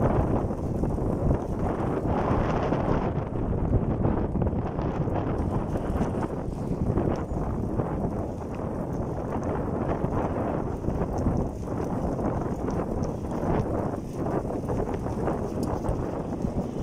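Wind rushes loudly across a microphone outdoors.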